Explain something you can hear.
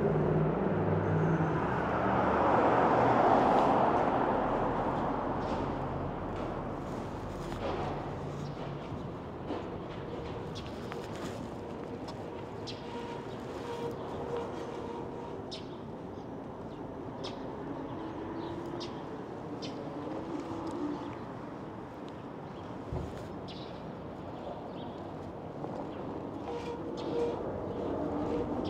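Wind rushes over the microphone of a moving e-bike outdoors.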